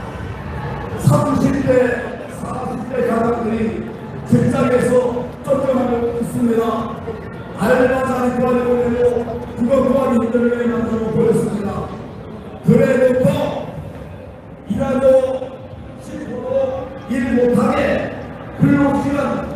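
A large crowd chants loudly outdoors in repeated bursts.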